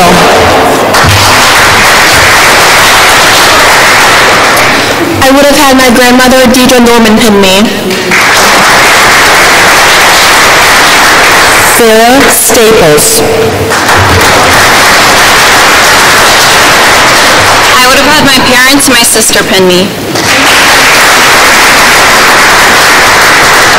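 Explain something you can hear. A crowd claps and cheers loudly in a large echoing hall.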